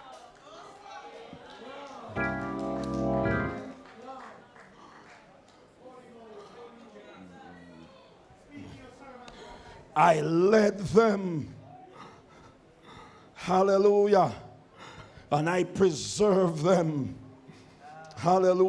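An elderly man preaches with animation through a microphone.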